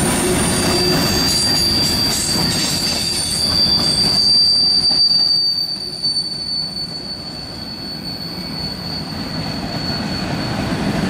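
Steel train wheels squeal against the rails.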